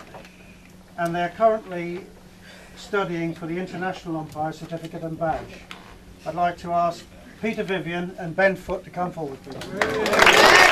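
An elderly man reads out announcements loudly to a room.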